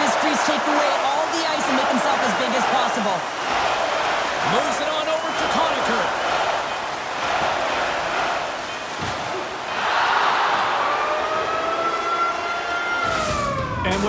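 An arena crowd cheers and roars steadily.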